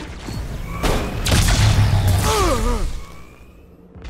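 An energy weapon fires with loud, crackling blasts.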